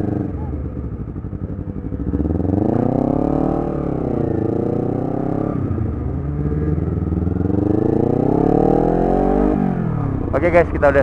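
A twin-cylinder sport motorcycle accelerates and slows as it rides along a road.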